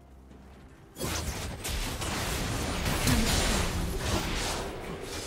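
Spell effects crackle and burst as game characters fight.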